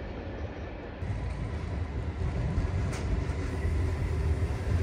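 A train rumbles slowly into a station.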